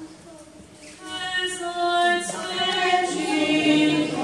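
A man chants a sung prayer in a reverberant room.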